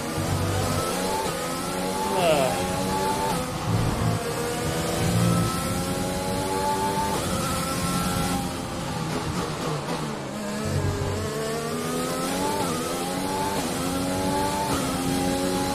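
A racing car engine whines, rising and dropping in pitch as it shifts gears.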